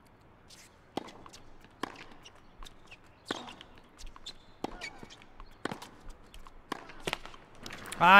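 A tennis ball is struck back and forth with sharp pops.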